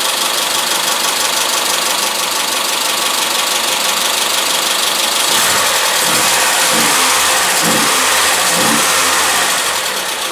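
A car engine runs roughly and steadily.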